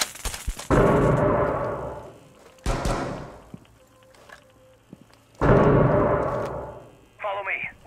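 Loud explosions boom nearby and rumble away.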